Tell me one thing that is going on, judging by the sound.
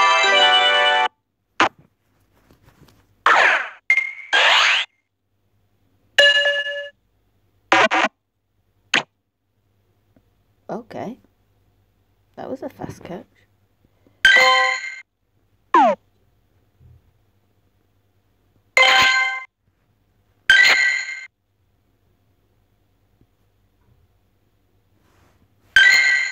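Short electronic game chimes and jingles play every few seconds.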